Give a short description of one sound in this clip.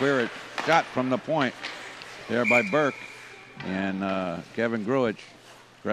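Hockey sticks clatter against each other and the puck.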